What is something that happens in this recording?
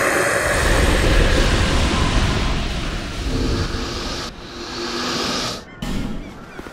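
A heavy blow lands on a large creature with a loud, rumbling burst.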